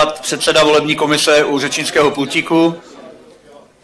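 A man speaks loudly through a microphone.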